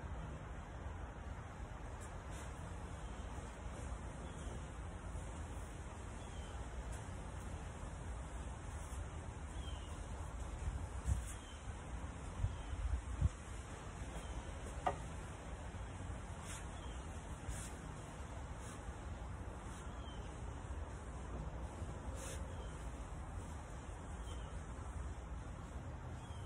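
A ceiling fan whirs steadily overhead.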